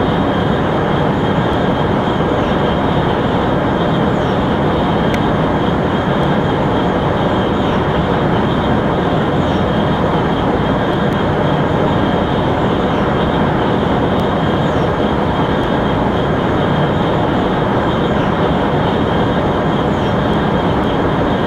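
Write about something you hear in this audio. A high-speed train roars steadily along the tracks.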